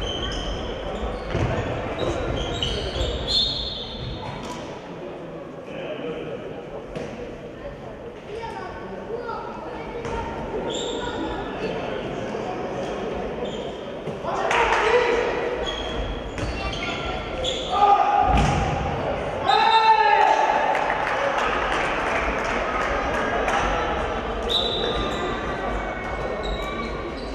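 Sneakers squeak sharply on a gym floor, echoing in a large hall.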